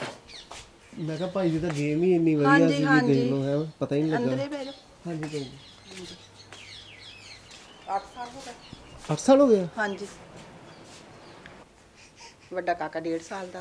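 An elderly woman speaks with animation, close by.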